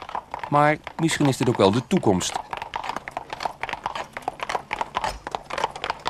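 A horse's hooves clop on the road.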